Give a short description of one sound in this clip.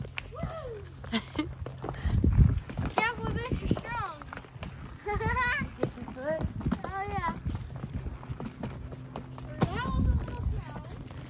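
Horse hooves thud and crunch on a dirt trail.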